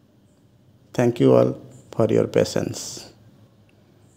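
A man speaks briefly and calmly close by.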